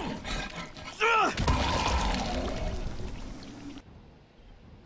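A heavy blow strikes a body with a wet crunch.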